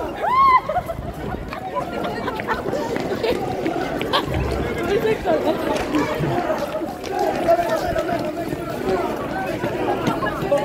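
A crowd of young women and men chatter and call out close by, in a large echoing hall.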